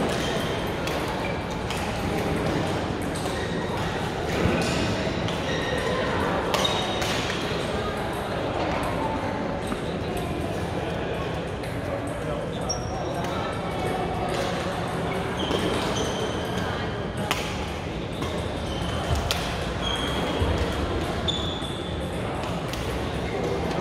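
Many people chatter in the background of a large hall.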